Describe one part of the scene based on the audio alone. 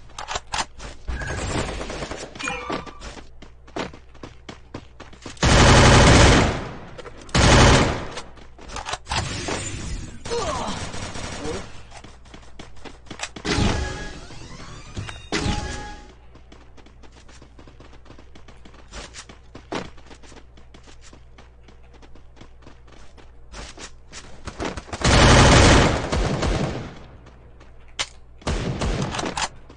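Gunfire rattles in quick bursts from a video game.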